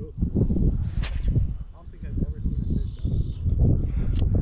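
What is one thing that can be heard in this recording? Fishing line whizzes off a spinning reel during a cast.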